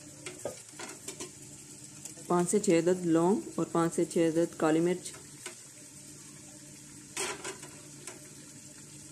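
Food sizzles softly in a pot.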